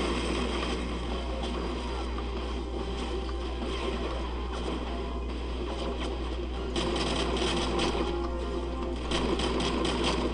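Rifle shots fire in rapid bursts in a large echoing hall.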